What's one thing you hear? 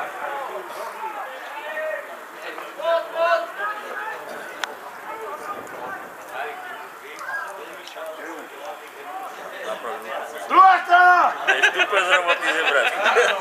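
Men in a crowd talk nearby outdoors.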